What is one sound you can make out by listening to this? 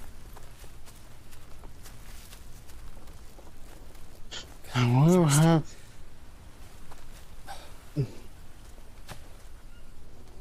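Leaves rustle as someone pushes through dense undergrowth.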